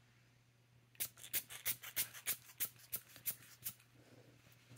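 A glass dropper taps lightly against paper.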